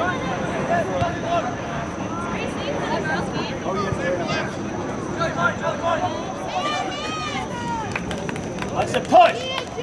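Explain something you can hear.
Young men shout and call out to each other outdoors across an open field.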